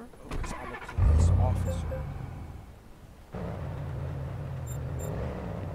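A car engine starts and runs with a low hum.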